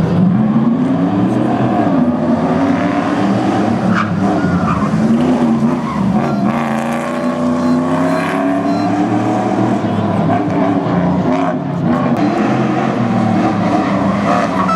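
A car engine roars loudly, revving up and down as the car speeds past.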